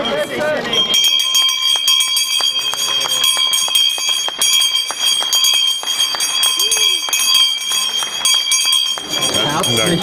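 A handbell rings loudly and continuously.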